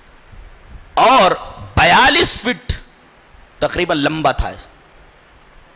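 A middle-aged man speaks with animation into a close microphone, in short bursts.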